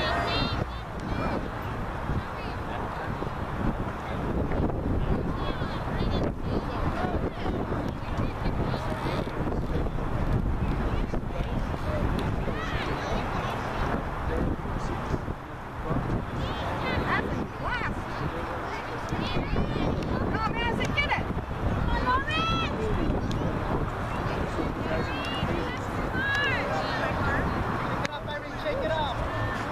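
Young girls shout and call out to each other from across a field.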